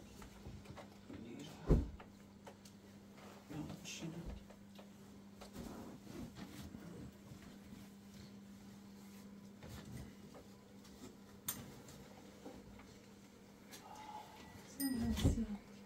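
Cloth bundles rustle as a man lifts and sets them down.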